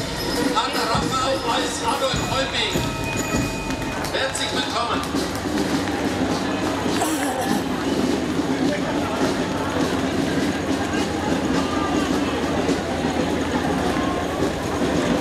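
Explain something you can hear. Footsteps shuffle on a stone pavement.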